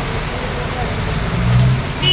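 A car splashes slowly through deep floodwater.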